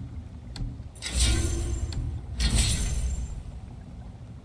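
A game sound effect whooshes twice as an item is equipped.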